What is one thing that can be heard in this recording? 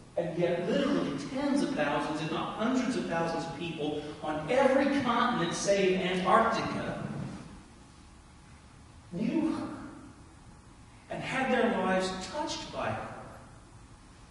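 A man preaches with animation, heard through a microphone in a large echoing hall.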